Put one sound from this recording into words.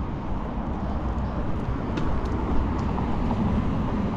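A car passes close by.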